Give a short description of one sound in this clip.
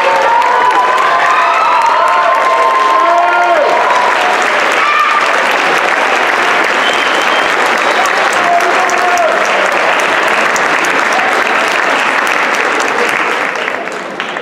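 A crowd of young people cheers and whoops loudly in a large hall.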